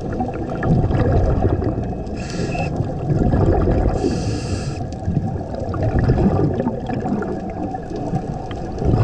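Air bubbles gurgle and rumble steadily from an underwater breathing regulator.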